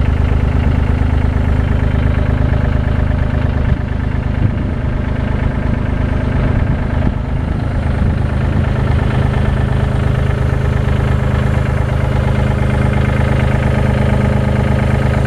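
A diesel engine idles steadily close by.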